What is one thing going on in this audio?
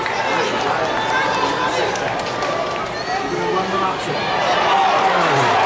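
A large crowd cheers and shouts in a stadium.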